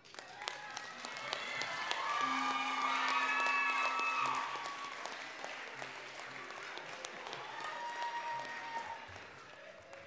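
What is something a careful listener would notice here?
Women in an audience cheer and whoop.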